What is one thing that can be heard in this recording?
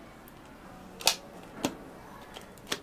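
Plastic lids snap onto cups.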